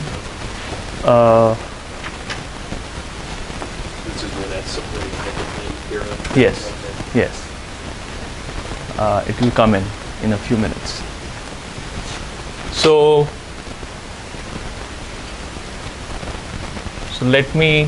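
A man speaks in bursts in a room with a slight echo.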